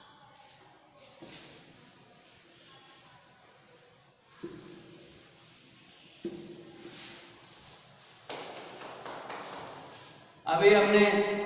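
A duster rubs and scrapes across a chalkboard.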